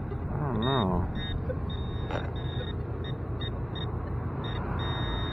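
A handheld metal detector beeps in short, repeated electronic tones.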